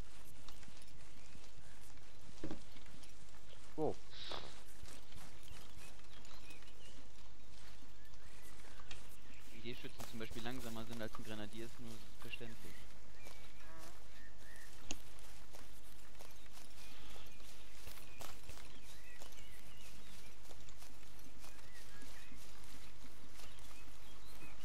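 Footsteps crunch and rustle through grass and brush.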